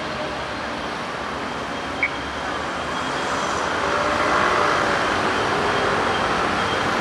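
Cars drive past on the road.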